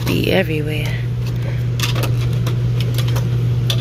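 A small wooden sign clatters lightly against a metal shelf.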